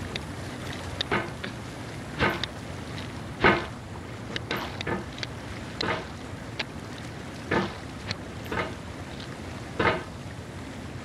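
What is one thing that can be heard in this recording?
A metal hammer knocks and scrapes against rock.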